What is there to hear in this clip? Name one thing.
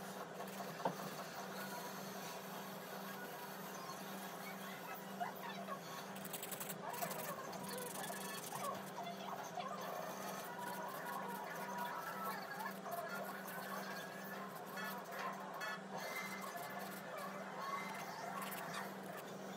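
A nail file scrapes back and forth across a fingernail.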